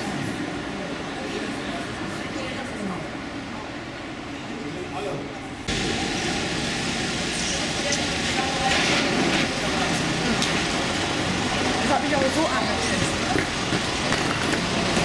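People talk nearby in a busy, echoing hall.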